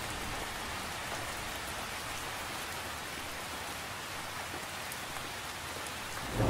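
Rain patters steadily on the surface of a lake outdoors.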